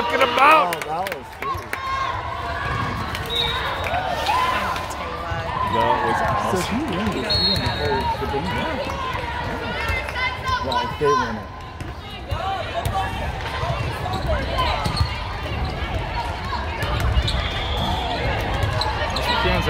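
Young women shout and call to each other in a large echoing hall.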